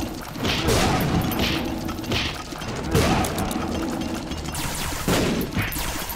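Electronic blasts and bursts of game sound effects go off again and again.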